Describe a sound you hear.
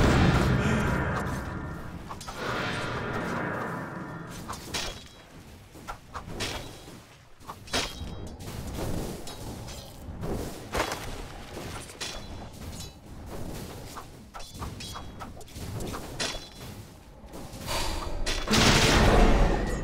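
Spell effects and weapon strikes crackle and clash in a game battle.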